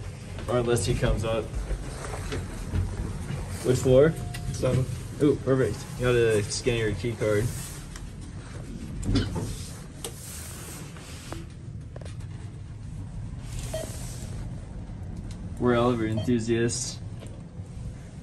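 Fingers press elevator buttons with soft clicks.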